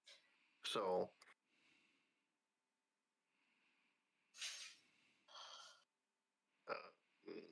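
An elderly man speaks briefly and casually into a close microphone.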